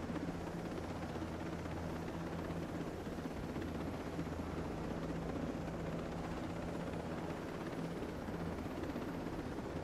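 Helicopter rotor blades thump steadily.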